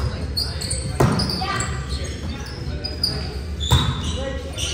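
A volleyball is struck with a sharp smack that echoes through a large hall.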